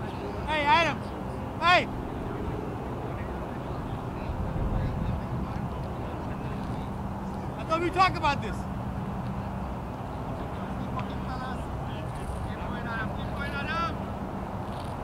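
Men call out to each other across an open field, far off.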